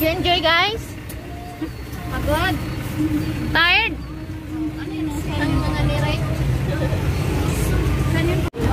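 A vehicle engine rumbles steadily while riding.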